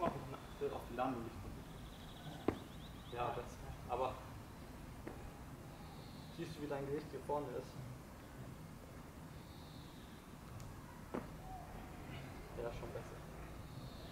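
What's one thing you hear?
A young man speaks calmly nearby, outdoors.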